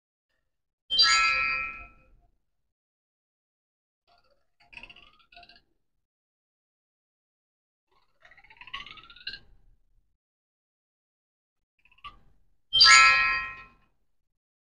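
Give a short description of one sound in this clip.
A game on a tablet plays short bright chiming jingles.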